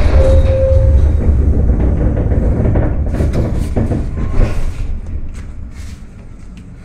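A bus drives past close by with a low engine rumble.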